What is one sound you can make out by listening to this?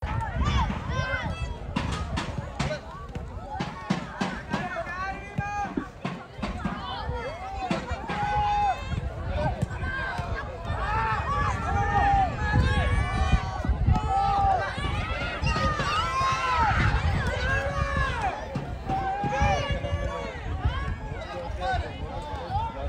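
A crowd of men shouts and cheers loudly outdoors.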